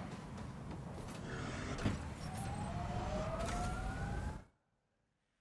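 A vehicle engine hums and rumbles.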